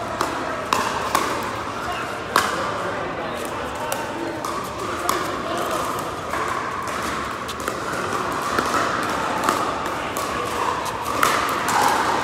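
Paddles pop sharply against a plastic ball, echoing in a large hall.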